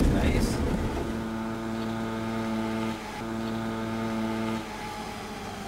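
A small motorbike engine hums steadily close by.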